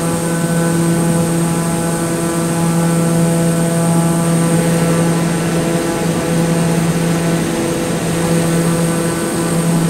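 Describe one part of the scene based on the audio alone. A propeller aircraft engine drones steadily.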